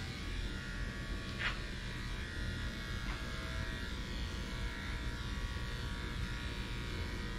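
Electric clippers buzz steadily as they trim a dog's coat.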